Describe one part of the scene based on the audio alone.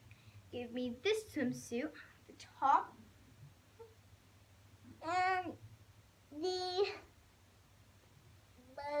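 A young girl talks with animation close by.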